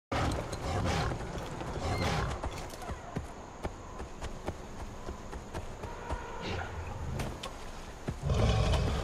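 A large animal's heavy footsteps thud quickly over grass and brush.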